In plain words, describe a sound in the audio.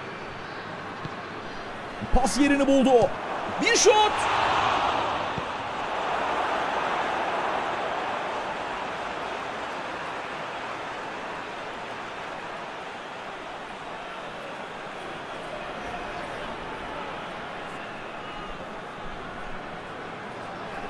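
A large crowd roars in a stadium, swelling loudly and then settling into a steady murmur.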